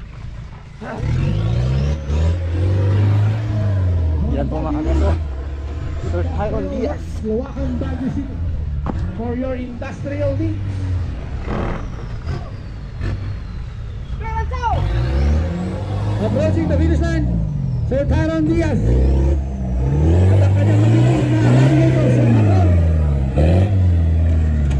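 A truck engine revs hard, rising and falling.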